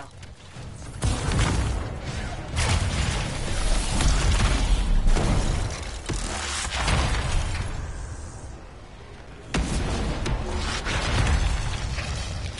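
Explosions and energy blasts boom and crackle.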